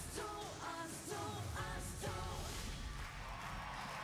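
Young women sing together in a large echoing hall.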